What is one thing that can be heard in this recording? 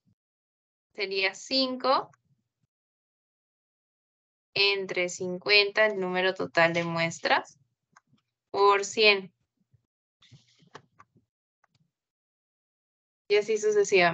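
A young woman speaks calmly over an online call, in short bursts with pauses.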